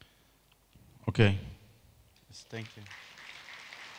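A man speaks into a microphone over a loudspeaker in a large hall.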